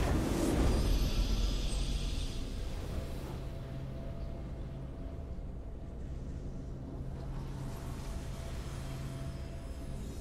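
A triumphant video game victory chime sounds.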